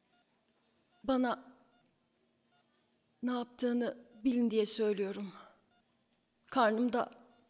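A woman moans and groans in pain, close by.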